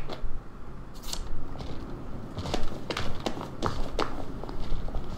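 Footsteps tap on stone pavement.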